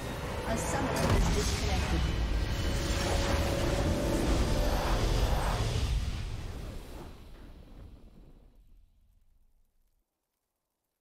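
A triumphant victory fanfare plays and fades out.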